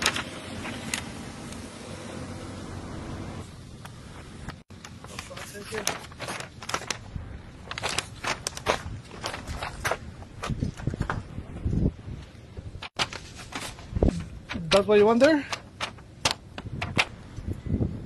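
Paper crinkles in hands.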